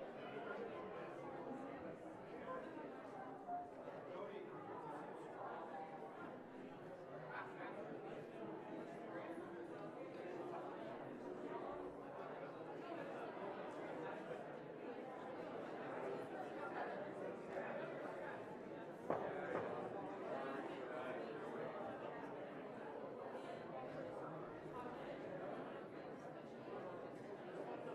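A crowd of men and women murmur and chatter in a large echoing hall.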